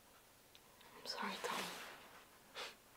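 A woman speaks softly close by.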